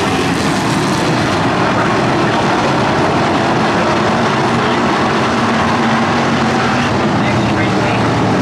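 Many race car engines roar loudly, close by.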